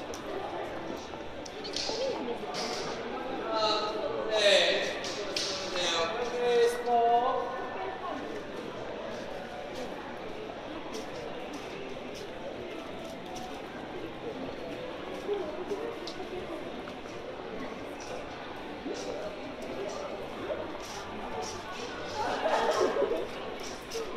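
A crowd murmurs all around in a large indoor space.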